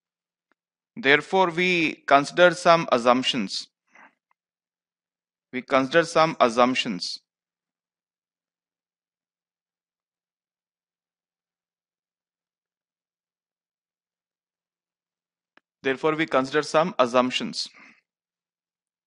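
A man lectures calmly into a headset microphone, with long pauses.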